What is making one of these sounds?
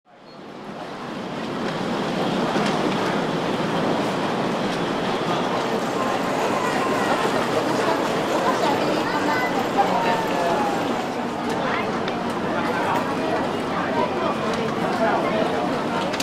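A crowd of people murmur and chatter indoors.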